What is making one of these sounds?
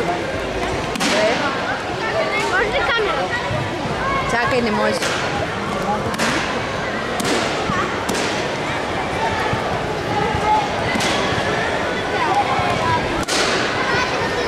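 Sharp shouts ring out now and then as young athletes strike.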